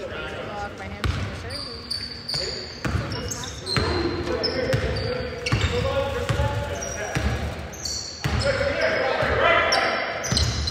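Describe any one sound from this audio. A basketball bounces on a hard floor with echoing thuds.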